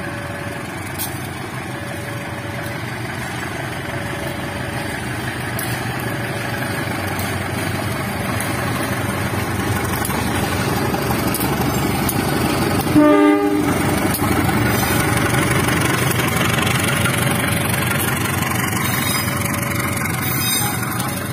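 A diesel locomotive rumbles as it draws closer, growing louder.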